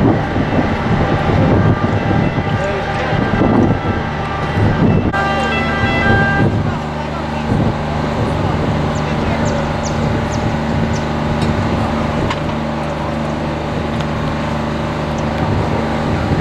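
A crowd of men talk outdoors, nearby.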